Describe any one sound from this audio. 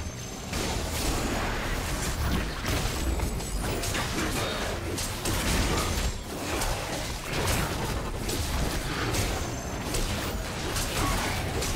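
Fantasy battle sound effects of spells and blows clash and burst rapidly.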